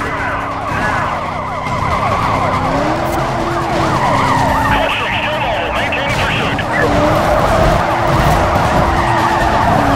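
Cars crash and scrape against each other.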